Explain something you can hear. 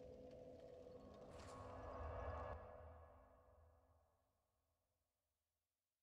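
A deep rushing whoosh swells and then fades away into silence.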